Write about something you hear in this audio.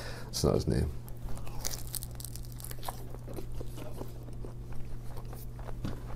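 A man chews food close up.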